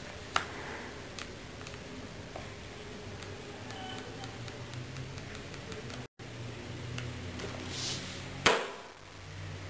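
Cards rustle and shuffle in a boy's hands.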